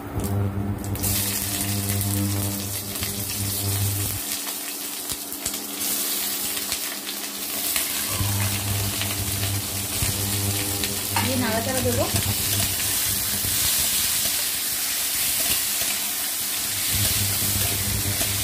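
Pieces of fruit sizzle and crackle in hot oil in a pan.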